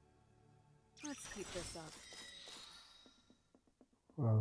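A bright level-up chime rings out.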